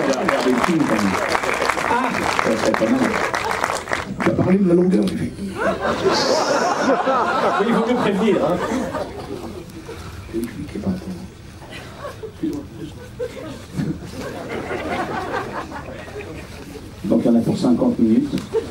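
A man speaks into a microphone, heard through loudspeakers in a large echoing hall.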